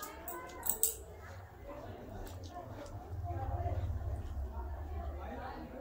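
A young woman chews food noisily with lip smacks close by.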